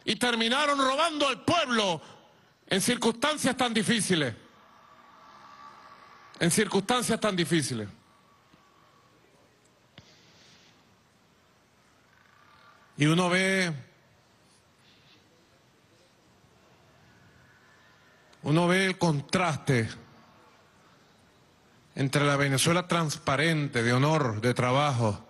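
A middle-aged man speaks into a microphone with pauses, heard through a loudspeaker.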